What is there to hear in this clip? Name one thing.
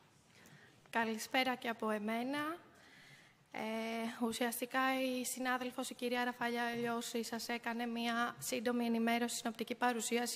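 A woman speaks steadily into a microphone, heard over loudspeakers in a large echoing hall.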